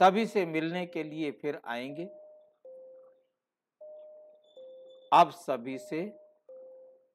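An elderly man speaks calmly and closely into a microphone.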